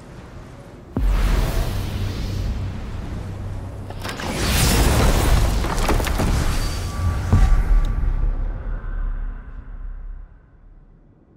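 A magical portal surges with a loud, deep whooshing roar that builds and then fades.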